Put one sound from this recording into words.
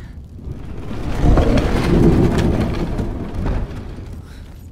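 A heavy wooden door grinds and rumbles open.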